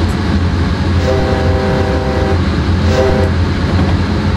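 A train horn sounds a long blast and then a short one.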